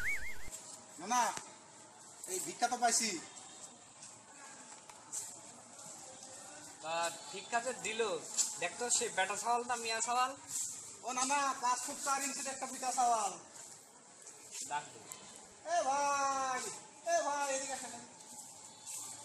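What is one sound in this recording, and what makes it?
Men talk with animation close by, outdoors.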